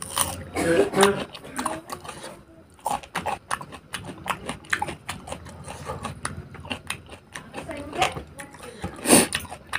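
A man chews food noisily close to a microphone.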